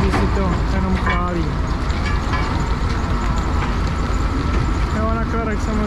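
A stone crusher rumbles and clatters steadily.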